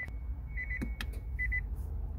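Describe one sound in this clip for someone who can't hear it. A gear selector clicks as a hand moves it.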